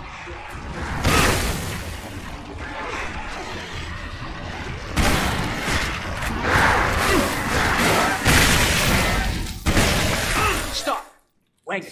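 Explosions boom and blast.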